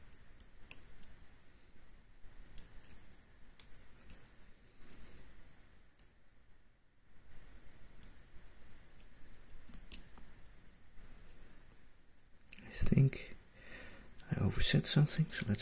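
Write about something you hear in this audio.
A metal pick scrapes and clicks softly inside a lock.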